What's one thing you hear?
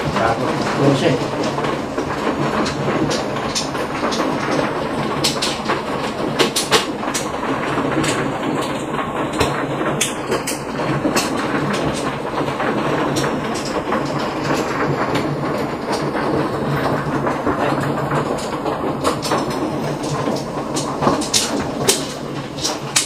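Plastic tiles clack and rattle against one another as they are shuffled and stacked on a table.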